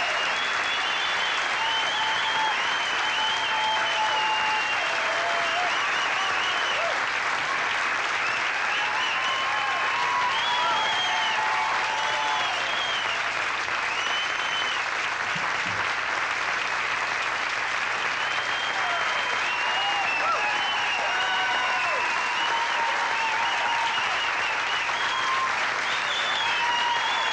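Many people in a large crowd whistle shrilly.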